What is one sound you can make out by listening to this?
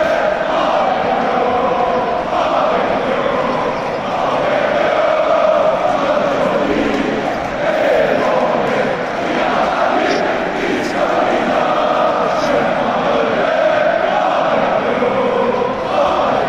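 A large crowd sings and chants loudly in a big echoing arena.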